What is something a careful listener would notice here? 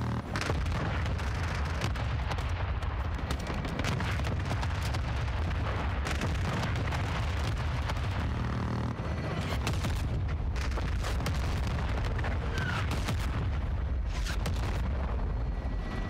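Gunfire crackles in sharp bursts.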